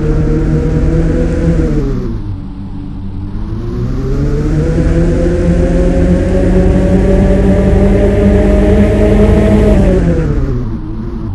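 A sports car engine roars, dipping in pitch at a gear change, then revving up high before easing off.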